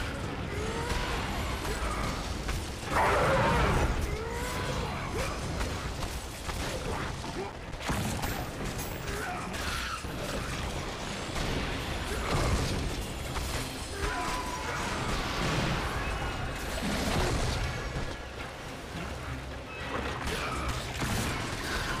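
Fire bursts and roars in short blasts.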